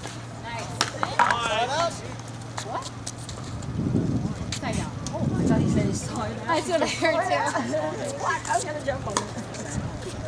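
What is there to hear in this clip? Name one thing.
Women talk with each other nearby.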